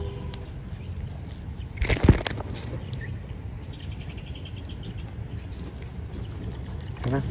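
A small fish flaps and slaps against a hand.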